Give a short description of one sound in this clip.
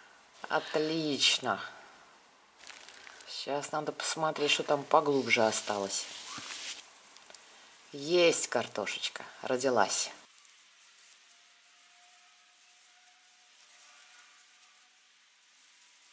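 Soil crumbles and rustles as potatoes are pulled up by hand.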